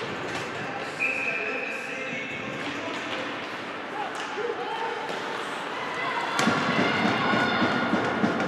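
Skates scrape and glide across the ice in a large echoing rink.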